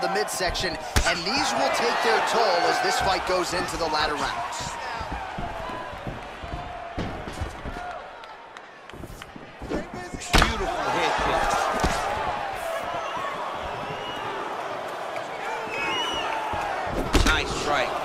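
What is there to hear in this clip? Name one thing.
Kicks land on a body with sharp, heavy thuds.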